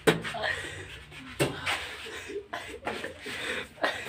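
Water splashes onto a man's head.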